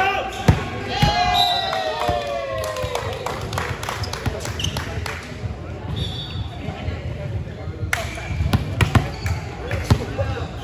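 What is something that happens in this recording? A volleyball thumps off hands and arms in an echoing gym.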